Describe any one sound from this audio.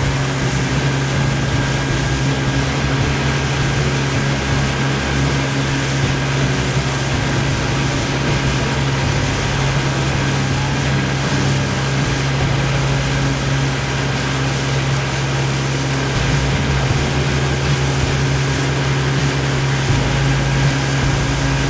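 Water splashes softly against a boat's hull.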